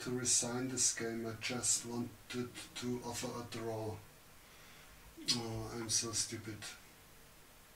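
A middle-aged man talks close to a microphone.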